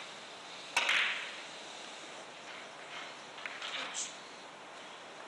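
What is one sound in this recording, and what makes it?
Billiard balls knock against each other and the cushions.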